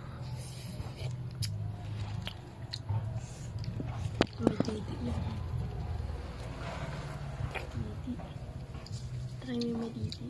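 A young girl sucks and slurps on a slice of citrus fruit close by.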